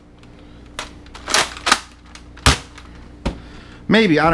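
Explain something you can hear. A plastic toy blaster clicks and rattles as it is handled.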